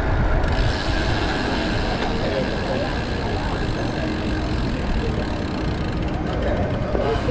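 Traffic hums in a busy street.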